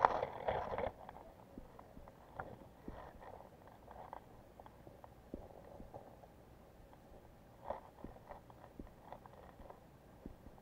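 Muffled clicks and bubbling sound underwater.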